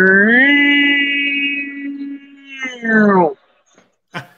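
A man shouts a long, drawn-out cry over an online call.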